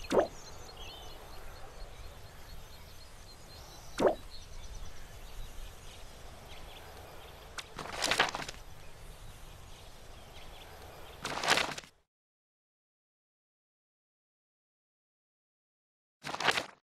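Short whooshing game sounds play several times.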